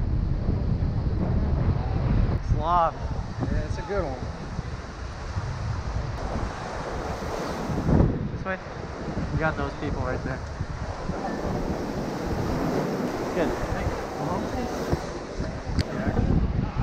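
Strong wind blows across the microphone outdoors.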